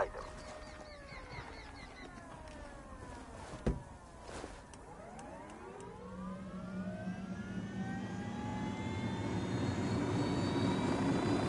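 A helicopter engine starts up and its whine rises steadily.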